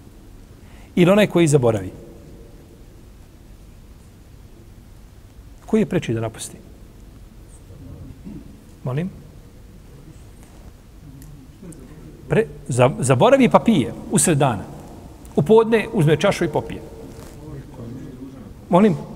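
An older man speaks calmly into a microphone, with pauses.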